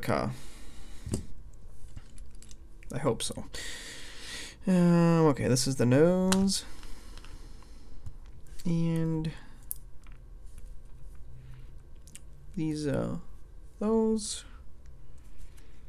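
Small plastic toy bricks click and rattle as hands handle them.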